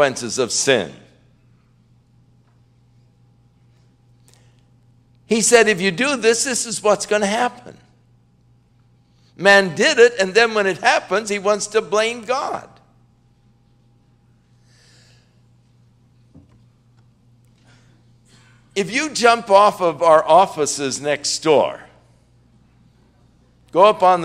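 An elderly man speaks forcefully into a microphone, in bursts with long pauses.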